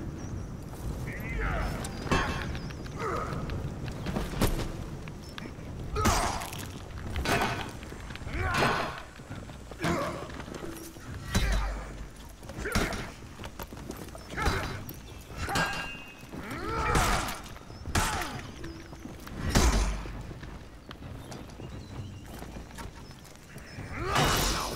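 Metal weapons clang and strike against shields in a fight.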